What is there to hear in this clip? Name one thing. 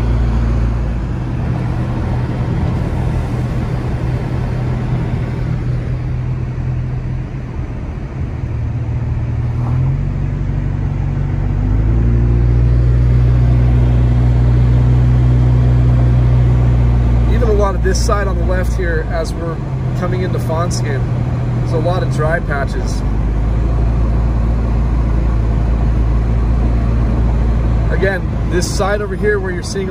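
A car engine hums steadily while driving, its pitch rising now and then.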